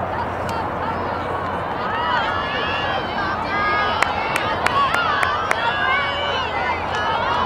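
Young girls shout and call out across an open field.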